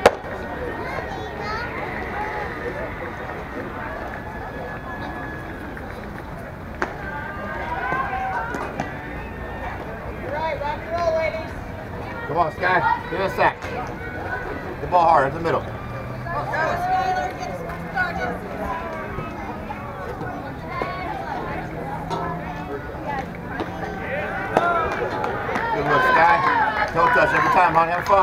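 Young women call out and cheer from across an open outdoor field.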